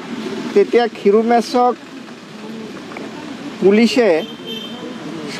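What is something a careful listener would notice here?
An elderly man speaks calmly into microphones close by.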